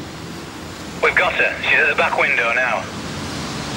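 A voice answers through a crackly two-way radio.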